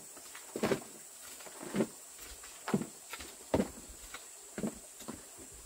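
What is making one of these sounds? A hoe scrapes and chops into soil in steady strokes.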